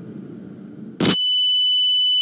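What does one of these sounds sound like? A loud explosion bursts.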